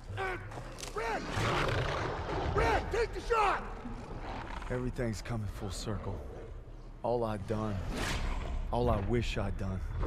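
A wolf snarls and growls close by.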